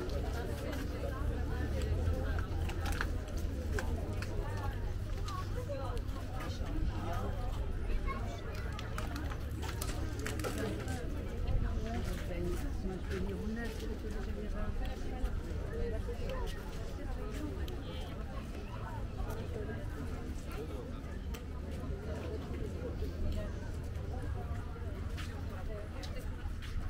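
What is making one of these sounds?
A crowd of people chatter in the distance outdoors.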